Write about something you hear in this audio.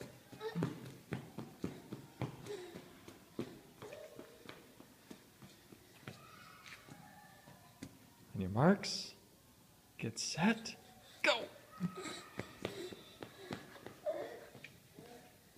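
Small shoes patter on a hard floor.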